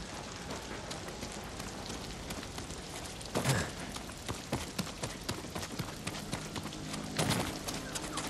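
Footsteps crunch quickly over grass and rock.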